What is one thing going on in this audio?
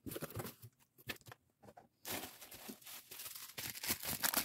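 Plastic wrapping crinkles as soft toys are handled.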